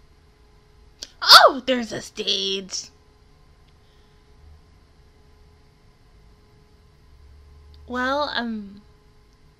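A young woman speaks up close into a microphone, with animation.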